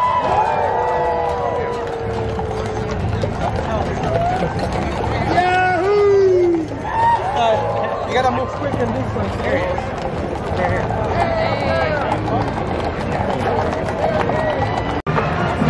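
Horse hooves clop on pavement.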